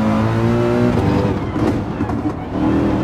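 A racing car engine drops in pitch as the car brakes.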